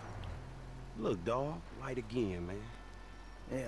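A man speaks casually from close by.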